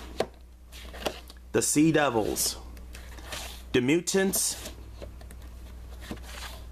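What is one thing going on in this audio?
Plastic cases click and rattle as fingers flip through them.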